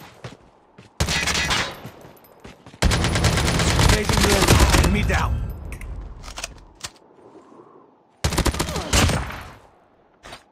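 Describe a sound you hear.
Automatic gunfire rattles loudly in bursts.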